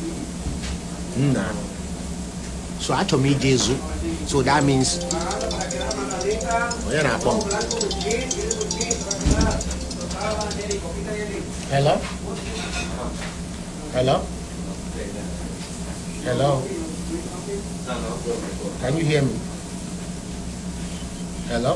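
A man talks casually and close to a phone's microphone, in short bursts with pauses.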